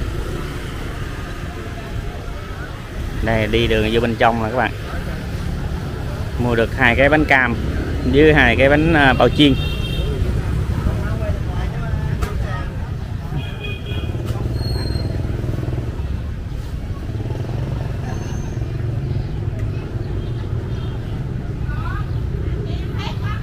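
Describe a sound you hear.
Motorbike engines hum past on a street.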